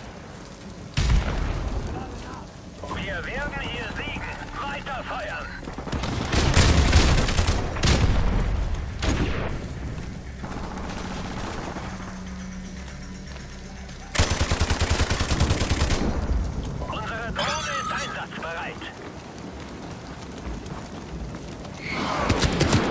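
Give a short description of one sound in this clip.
Rapid gunfire bursts ring out in quick strings.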